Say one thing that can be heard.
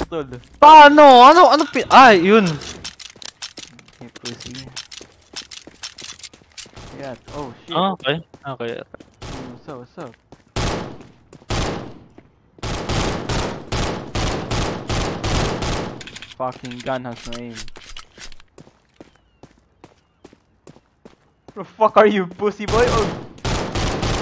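A young man speaks excitedly into a microphone.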